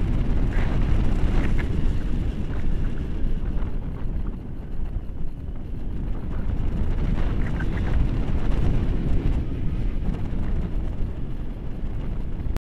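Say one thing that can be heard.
A man talks close by, partly drowned by the wind.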